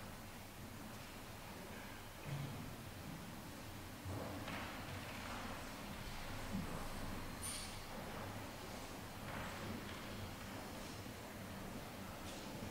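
Men and women murmur and chat quietly in a large echoing hall.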